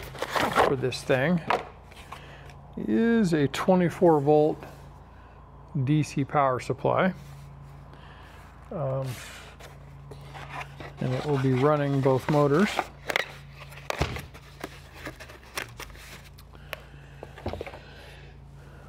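Cardboard rustles and taps as a box is handled.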